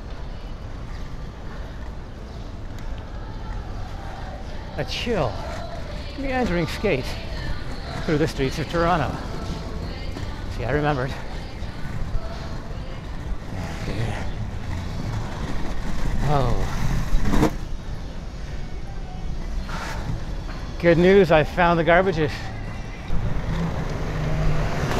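Inline skate wheels roll and rumble over pavement.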